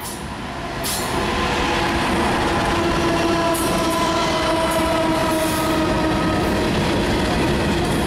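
Freight cars clatter and rumble over the rails.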